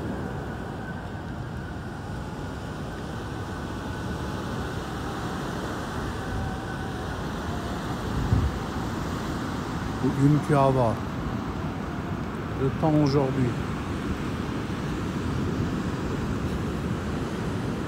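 Strong wind buffets the microphone.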